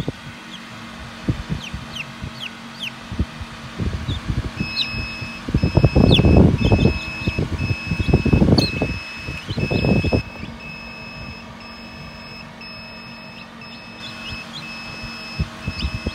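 Newly hatched chicks peep in high, short cheeps.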